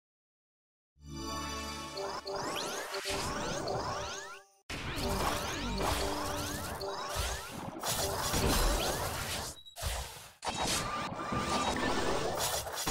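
Magic attack sound effects whoosh, chime and crash in rapid bursts.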